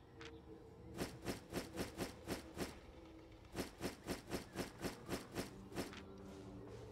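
Quick game menu clicks tick in a rapid series.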